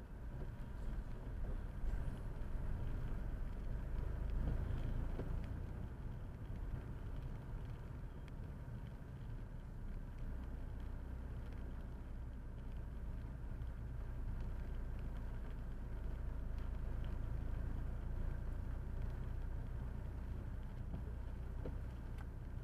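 Raindrops tap on a windscreen.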